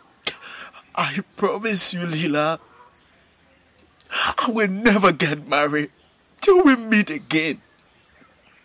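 A young man speaks in a tearful, pleading voice close by.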